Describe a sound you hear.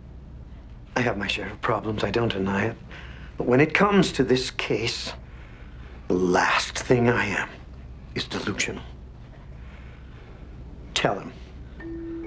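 Another middle-aged man replies calmly and earnestly.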